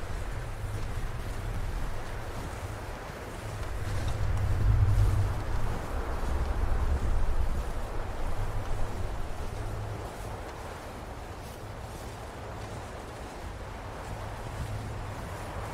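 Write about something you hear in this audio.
Wind blows steadily outdoors, gusting louder at times.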